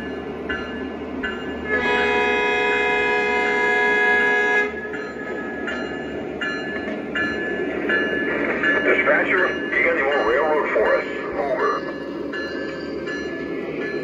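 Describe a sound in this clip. Model train wheels clatter along the track.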